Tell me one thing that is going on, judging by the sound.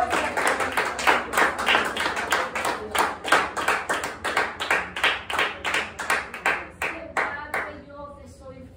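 A woman claps her hands quickly in rhythm.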